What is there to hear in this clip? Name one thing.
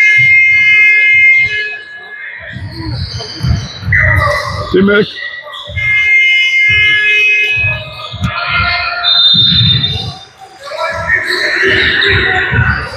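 A basketball bounces on the court with dull thumps.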